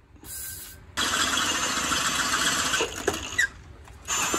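A cordless impact driver whirs and rattles.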